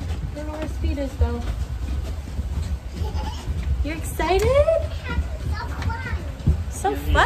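A young woman talks close by in a lively way.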